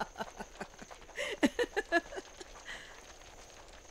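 A woman sobs and whimpers close by.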